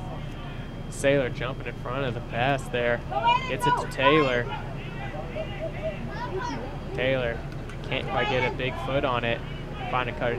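Young men shout to each other across an open playing field.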